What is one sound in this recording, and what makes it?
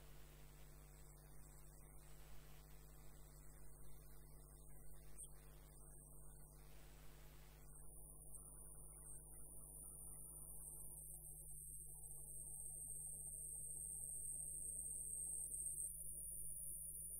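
A hollowing tool scrapes inside a spinning wooden blank on a lathe.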